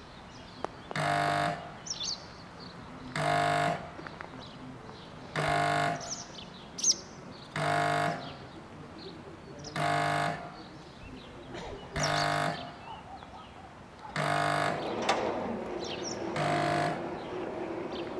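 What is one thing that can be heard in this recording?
A level crossing bell rings in loud, evenly spaced bursts.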